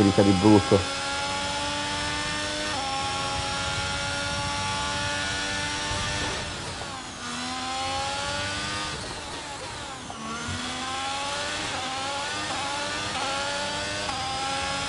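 A racing car engine screams at high revs, rising through the gears and dropping as it slows for corners.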